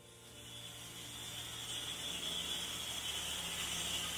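Cold gas hisses steadily from valves.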